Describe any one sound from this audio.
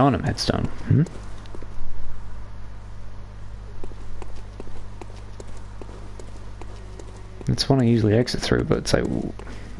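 Footsteps walk over stone and gravel.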